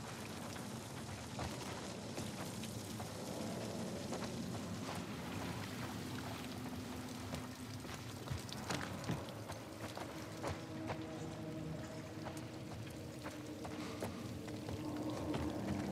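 Footsteps thud slowly across a hard floor.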